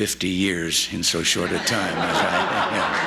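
An elderly man speaks with amusement into a microphone.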